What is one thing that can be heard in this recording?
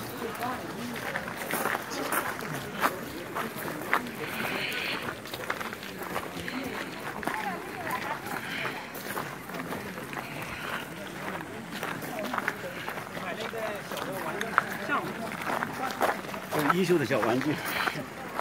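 Footsteps crunch and scuff on a gravel path.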